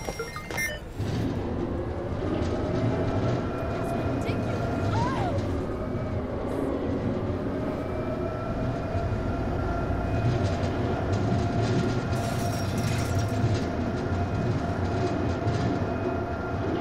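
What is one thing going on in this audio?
A lift truck's engine hums steadily as it drives along.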